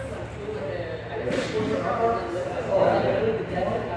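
A heavy tyre thumps down onto a padded floor.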